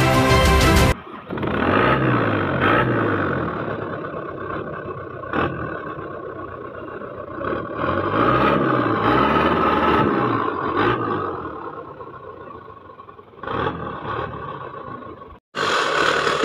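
An off-road vehicle's engine idles and revs up and down close by.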